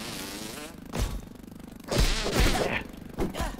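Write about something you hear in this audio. Heavy blows thud against a creature.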